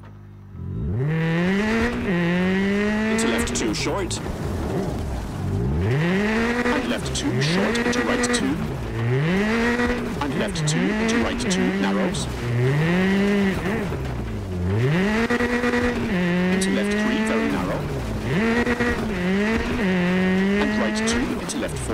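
A rally car engine revs hard, rising and falling with each gear change.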